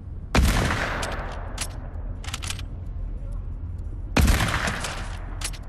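A rifle fires single loud shots that echo away.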